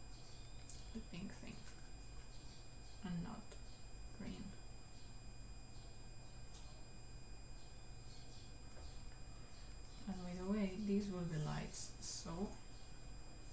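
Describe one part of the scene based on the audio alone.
A young woman speaks briefly and casually into a nearby microphone.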